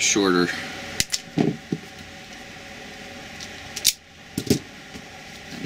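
Pliers click and snap while crimping wires.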